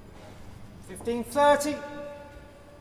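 A man calls out loudly in an echoing hall.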